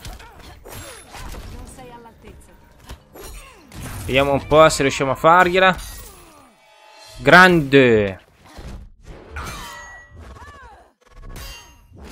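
Heavy punches and kicks thud and smack in quick bursts.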